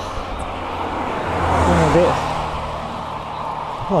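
An oncoming car whooshes past and fades.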